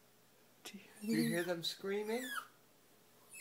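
A dog howls close by in long wavering cries.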